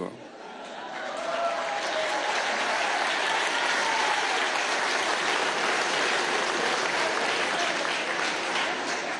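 A large audience applauds loudly in a hall.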